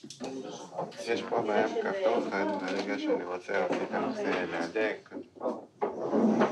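A man speaks calmly, giving instructions close by.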